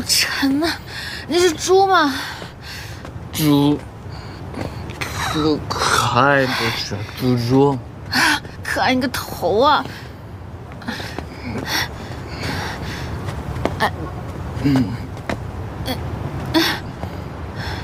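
A young woman speaks close by in a whiny voice.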